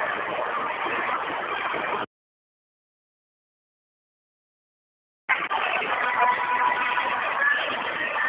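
A large crowd chatters and cheers noisily nearby.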